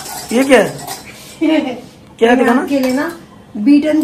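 A whisk clinks against a metal bowl.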